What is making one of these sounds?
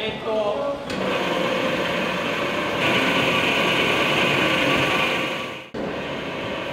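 A machine grinds loudly and steadily.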